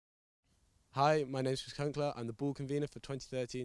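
A young man speaks calmly into a handheld microphone.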